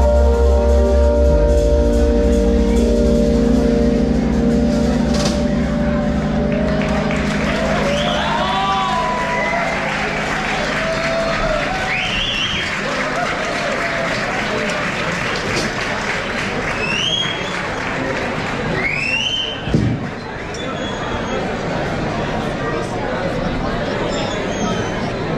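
A drummer plays a drum kit loudly.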